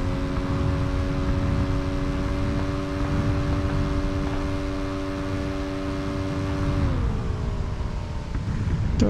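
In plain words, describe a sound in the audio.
A motorbike engine roars steadily, then winds down.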